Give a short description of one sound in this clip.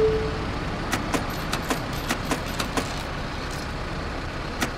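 Coins clink into a tray.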